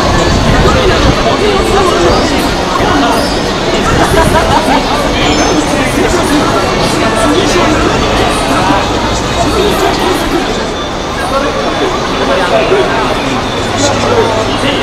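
A crowd of people chatter in the background outdoors.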